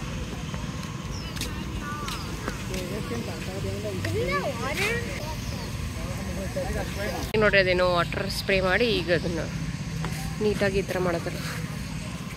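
Adults and children talk nearby outdoors.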